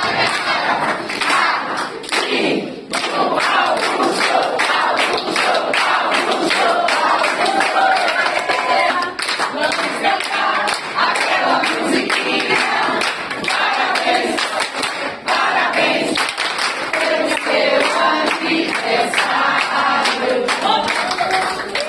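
A group of adults sings together loudly.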